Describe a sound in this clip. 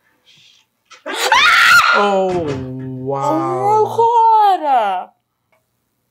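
A young woman exclaims loudly in surprise.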